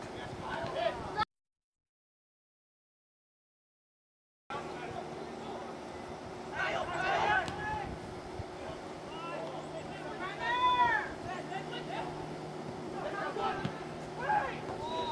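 Young players shout to each other across an open field in the distance.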